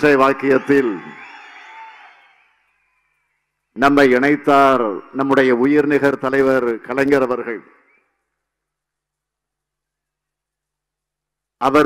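A middle-aged man speaks forcefully into a microphone over loudspeakers, with echo.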